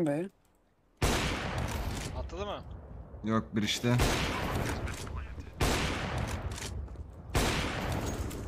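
A sniper rifle fires loud shots that echo.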